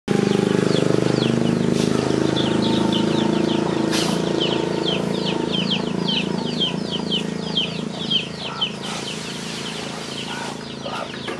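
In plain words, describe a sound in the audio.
A small child's sandals patter softly on dirt.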